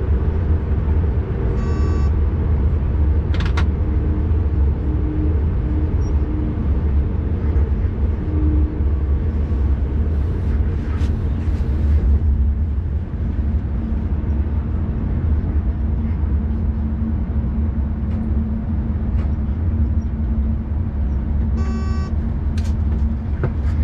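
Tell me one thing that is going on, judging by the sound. A train rumbles steadily along the rails with a deep low roar.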